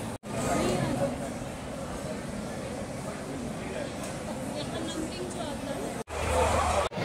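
A crowd murmurs in an echoing hall.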